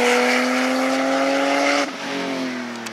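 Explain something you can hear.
A race car engine roars past at high speed and fades away.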